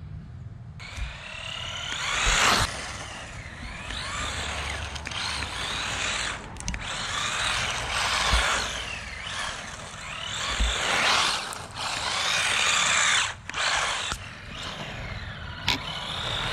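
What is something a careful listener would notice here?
An electric motor whines at high pitch, rising and falling as a small toy car speeds past.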